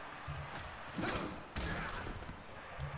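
Armoured players crash together with heavy thuds.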